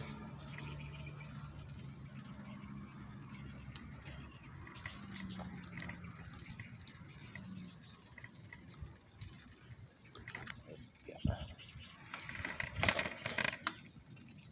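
A wire bicycle basket rattles and clinks over bumps.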